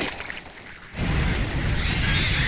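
A creature's body bursts with a wet splatter.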